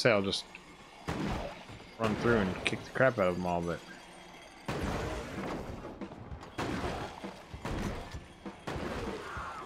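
Gunshots and explosions crackle from a video game.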